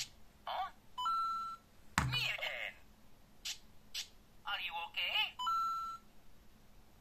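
A small electronic toy beeps with a steady tone.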